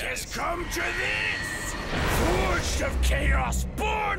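A man speaks slowly in a deep voice.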